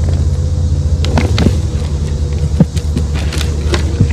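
A shovel scrapes and thuds into dirt.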